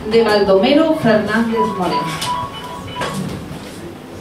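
A young woman speaks into a microphone, heard over a loudspeaker.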